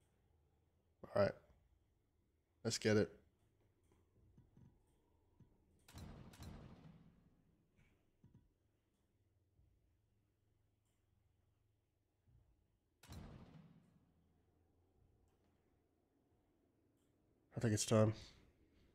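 A game menu plays short whooshing sound effects as options are picked.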